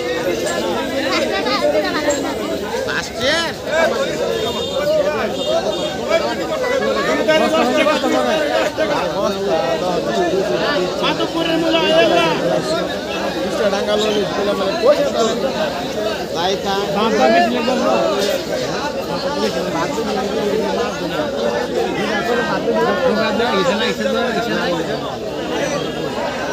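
Many men and women talk at once nearby, outdoors.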